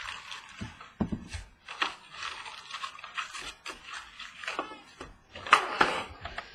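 Trading cards slap softly onto a table.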